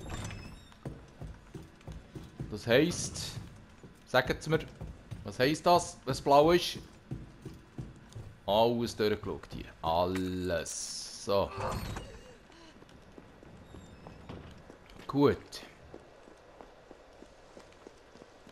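Footsteps fall on a wooden floor.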